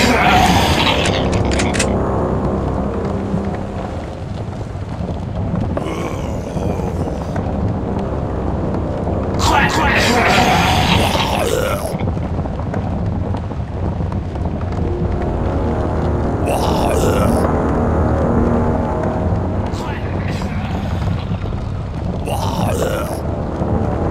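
Footsteps tread steadily over dry ground.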